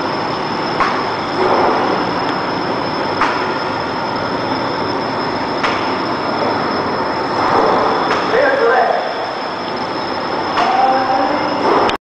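Sheets of paper slap and rustle as the machine feeds them out.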